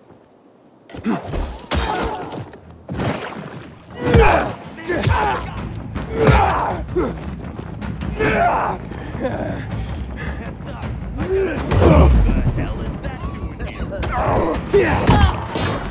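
Heavy blows thud against a body in quick succession.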